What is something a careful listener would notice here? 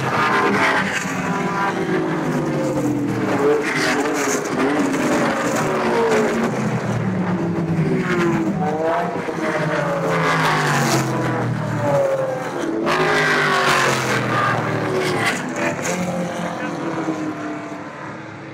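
Racing car engines roar loudly as cars speed past one after another, their pitch sliding as they go by.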